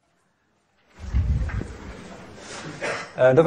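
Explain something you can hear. A man speaks calmly as he lectures, heard through a microphone.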